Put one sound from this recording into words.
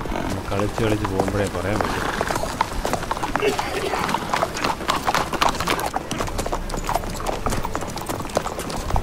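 Horse hooves clop slowly on stone and dirt.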